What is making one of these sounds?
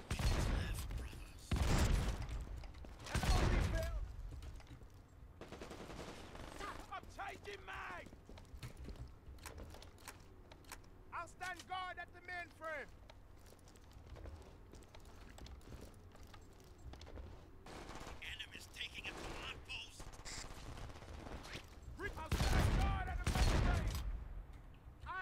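Gunfire booms in loud bursts.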